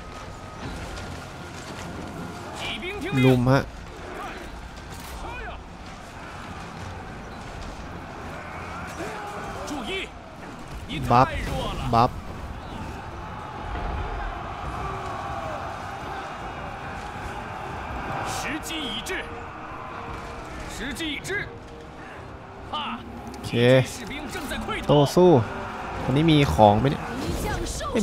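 Weapons clash and armour clatters in a steady battle din.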